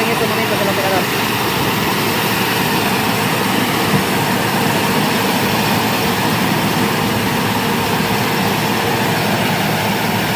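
Dry corn stalks crackle and crunch as a harvester cuts through them.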